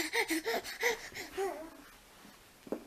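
A baby babbles and squeals excitedly close by.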